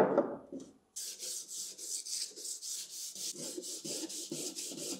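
Sandpaper rubs back and forth over a metal surface in quick, rhythmic strokes.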